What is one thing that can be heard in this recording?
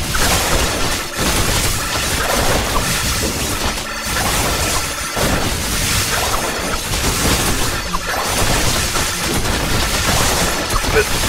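Electronic zaps and hits from a video game crackle rapidly.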